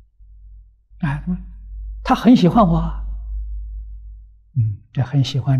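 An elderly man speaks calmly and warmly into a close microphone.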